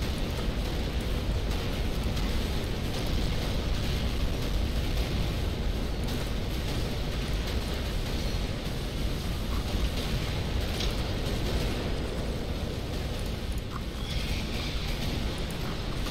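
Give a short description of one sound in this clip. Weapons fire and explosions rumble steadily in a loud battle.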